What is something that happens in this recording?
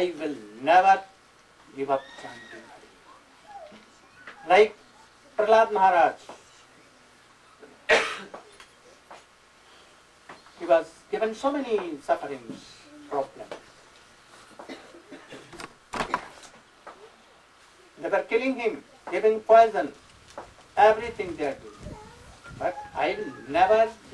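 An elderly man speaks calmly into a microphone, with pauses between phrases.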